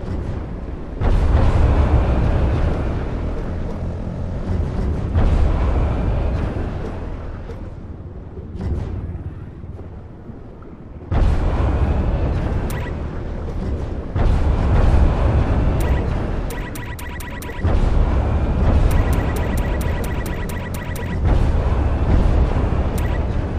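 A vehicle engine roars and surges in bursts, muffled as if under water.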